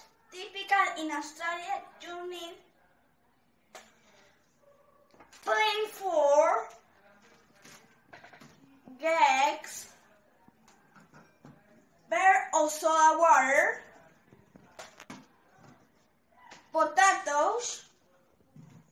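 A young boy speaks with animation close by, in short bursts with pauses.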